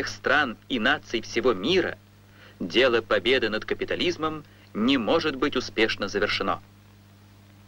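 An elderly man speaks loudly and forcefully to an audience.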